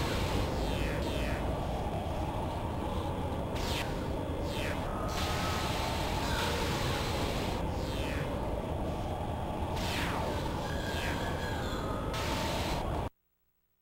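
Gunfire and blasts whoosh past in bursts.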